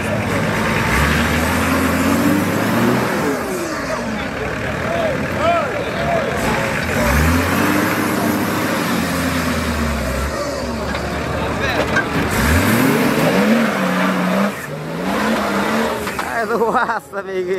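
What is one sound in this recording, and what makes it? A vehicle engine revs hard and roars.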